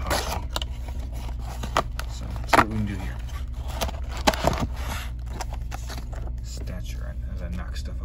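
Cardboard packaging rustles and scrapes as a box is handled.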